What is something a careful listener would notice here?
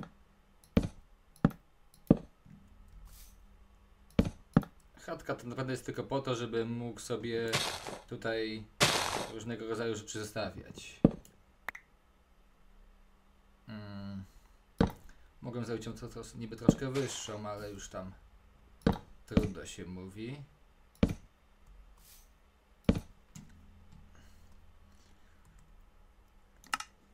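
Wooden blocks are set down with short, dull knocks.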